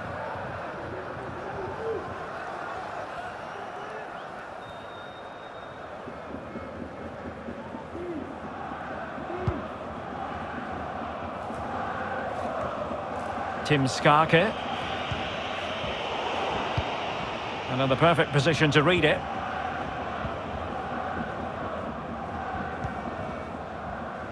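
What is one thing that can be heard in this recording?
A stadium crowd murmurs and chants steadily throughout.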